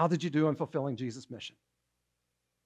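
A man speaks with animation through a headset microphone, then falls silent.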